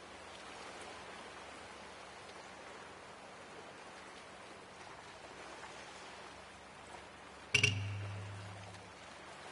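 Water churns and splashes steadily.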